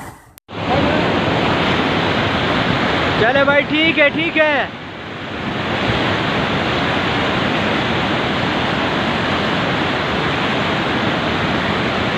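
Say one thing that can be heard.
A fast river roars and rushes loudly.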